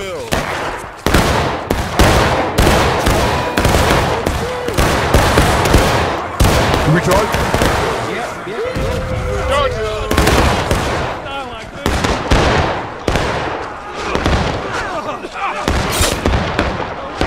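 Rifle shots crack and boom in rapid bursts with echoing rumble.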